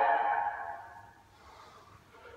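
A didgeridoo drone rings out and fades away.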